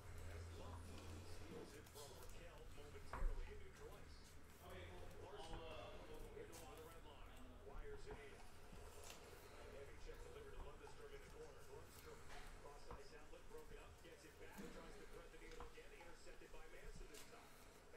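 Trading cards flick and slide against each other as they are shuffled.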